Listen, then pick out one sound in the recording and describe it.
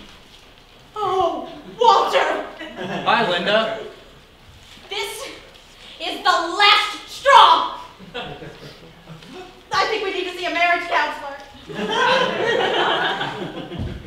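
A young woman speaks loudly with emotion, with some echo.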